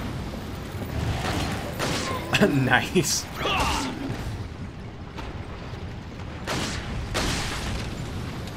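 Gunshots fire loudly.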